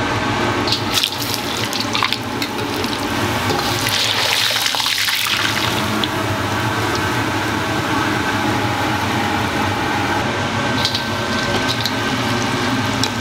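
Hot oil sizzles and crackles in a wok.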